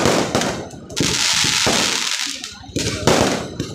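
Fireworks crackle and hiss as sparks scatter.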